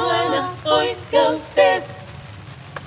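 Several women sing together in harmony, close by.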